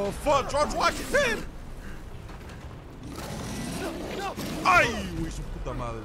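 A large beast roars and growls up close.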